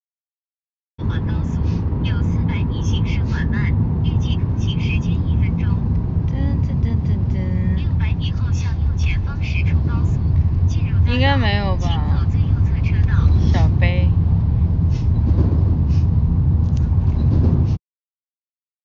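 A young woman speaks softly, close to a phone microphone.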